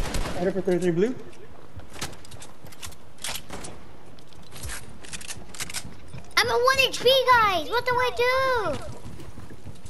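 A young boy speaks with excitement through a headset microphone.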